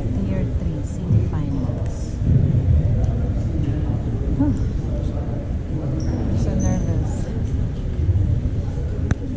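Voices of a crowd murmur and chatter in a large echoing gym.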